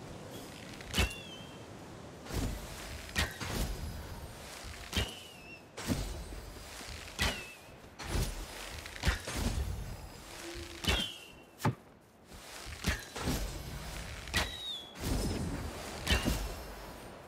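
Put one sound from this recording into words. A bowstring snaps as arrows are shot, one after another.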